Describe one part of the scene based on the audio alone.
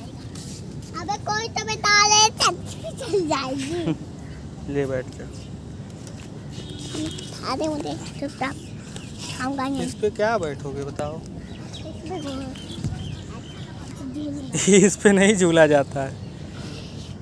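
A young child talks and calls out nearby, excited.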